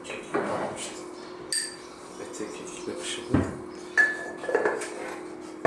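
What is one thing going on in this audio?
A spoon taps against a cup.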